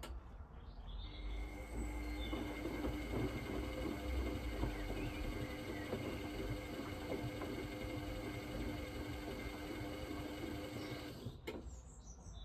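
A washing machine motor whines steadily.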